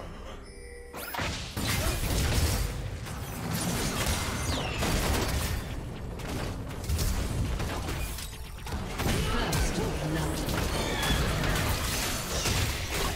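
Spell effects crackle and burst.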